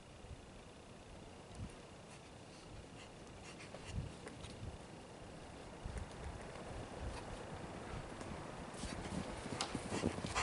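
Footsteps crunch through deep snow, coming closer.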